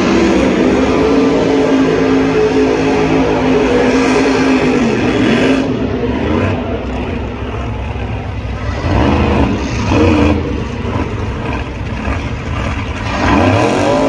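Tyres screech against the pavement during a burnout.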